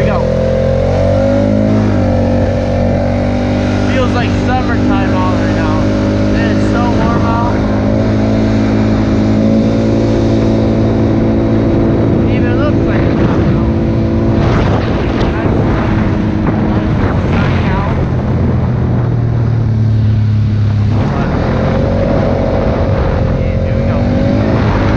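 An all-terrain vehicle engine drones steadily and changes pitch as it speeds up and slows down.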